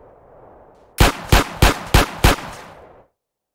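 A gun fires several shots in quick succession.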